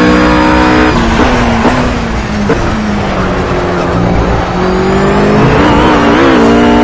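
A GT3 racing car engine drops in pitch as it brakes and downshifts.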